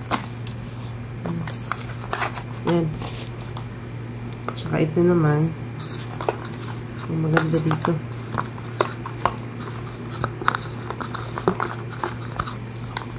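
Paper and plastic rustle close by.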